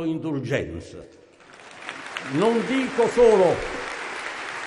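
An elderly man speaks slowly into a microphone in a large echoing hall.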